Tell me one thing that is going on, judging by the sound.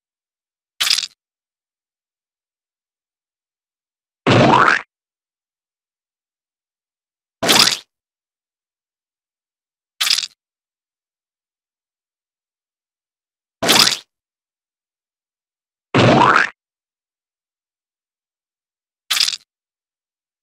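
Short squishing splats sound as bugs are squashed, one at a time.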